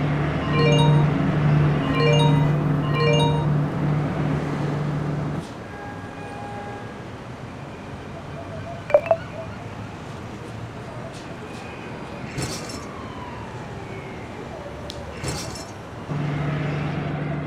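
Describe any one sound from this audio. A bright game tune with a steady low hum plays.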